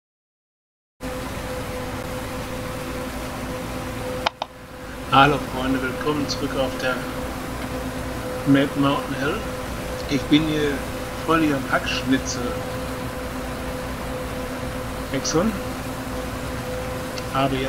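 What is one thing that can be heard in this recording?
A forage harvester engine hums steadily.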